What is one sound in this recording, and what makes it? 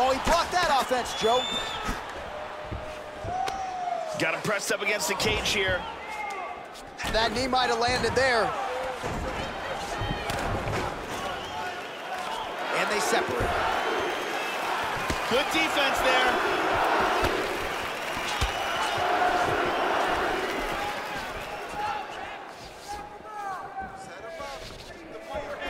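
A large crowd cheers and roars in a big hall.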